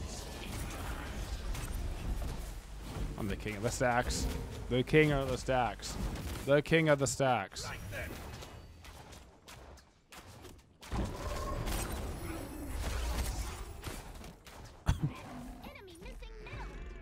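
Fantasy battle sound effects clash and whoosh.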